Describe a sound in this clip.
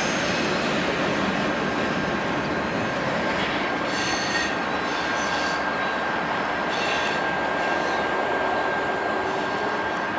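Train wheels squeal and screech on the rails.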